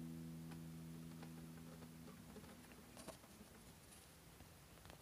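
Fingers squeak and tap on guitar strings.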